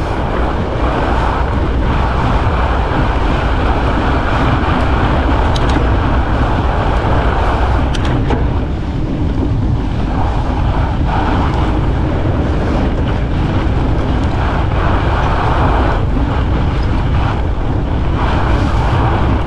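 Wind rushes and buffets loudly against the microphone outdoors.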